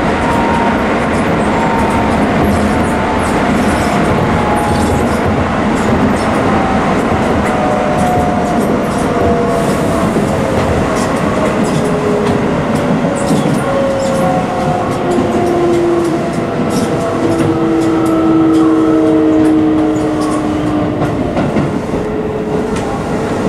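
A train's electric motors whine, sliding slowly down in pitch.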